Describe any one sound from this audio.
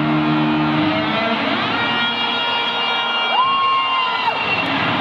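Loud amplified music plays through speakers in a large echoing arena.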